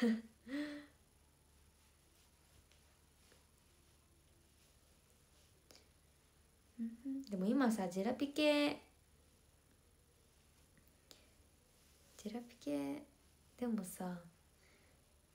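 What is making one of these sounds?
A young woman speaks softly and close by, in short phrases with pauses.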